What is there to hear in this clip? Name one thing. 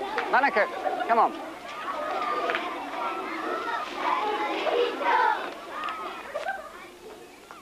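A crowd of children shout and chatter excitedly outdoors.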